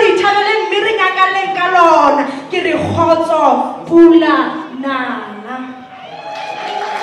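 A woman speaks with animation through a loudspeaker in a large hall.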